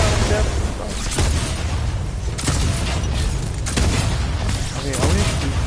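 Energy blasts and gunfire crackle and boom in quick bursts.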